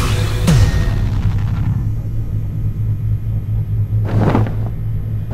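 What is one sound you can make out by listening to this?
A low steady drone hums throughout.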